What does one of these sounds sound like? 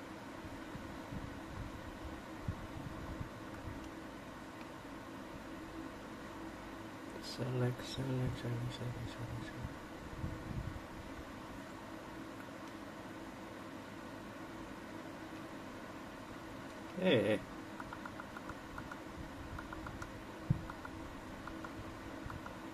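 Buttons click on a handheld game controller.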